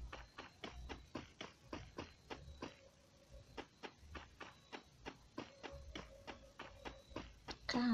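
Footsteps thud quickly on a wooden floor.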